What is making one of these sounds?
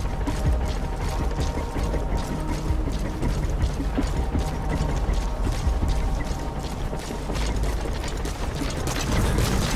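Footsteps crunch quickly on dry gravel.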